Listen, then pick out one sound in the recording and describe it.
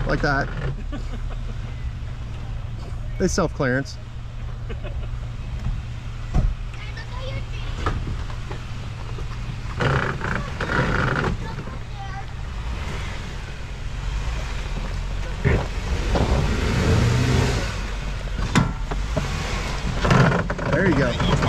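An off-road vehicle's engine rumbles as it crawls closer.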